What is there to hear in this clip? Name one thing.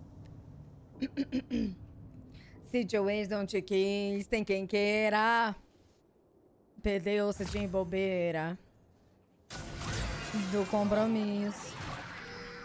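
A young woman sings into a close microphone.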